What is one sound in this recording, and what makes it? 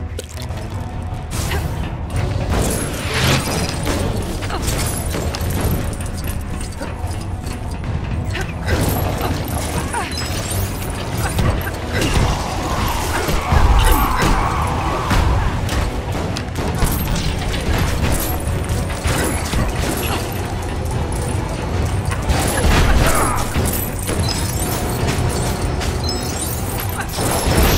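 Game music plays steadily throughout.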